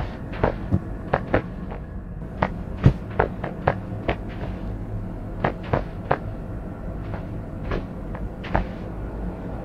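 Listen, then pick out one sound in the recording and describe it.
Footsteps tap unevenly on a hard surface.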